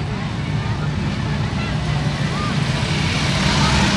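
A motorcycle approaches and rides past with a deep engine rumble.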